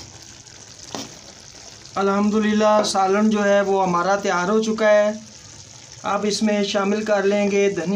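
A metal spoon scrapes and stirs food in a pan.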